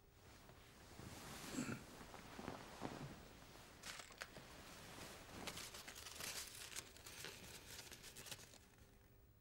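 Crumpled paper crinkles as it is unfolded by hand.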